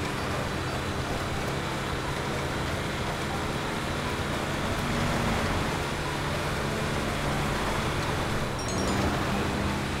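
A heavy truck engine rumbles steadily while driving.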